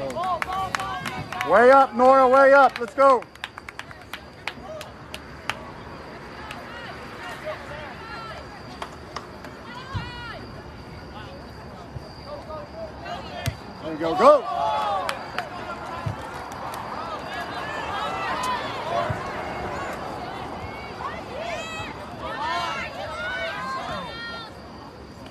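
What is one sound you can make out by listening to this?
Spectators shout and cheer loudly outdoors.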